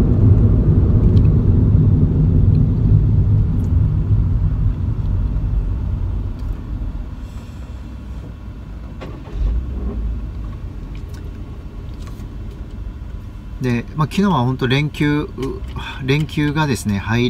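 A car engine hums low and steady, then quietens.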